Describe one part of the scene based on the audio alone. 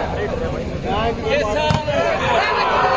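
A volleyball is struck hard during play.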